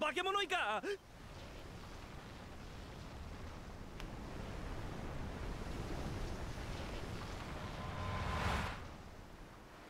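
Waves churn and surge on the open sea.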